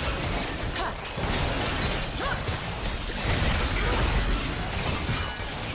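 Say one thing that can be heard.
Fantasy battle effects crash and boom as fighters attack a large monster.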